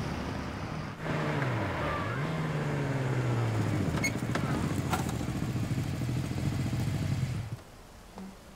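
A motorcycle engine rumbles and revs close by, then cuts out.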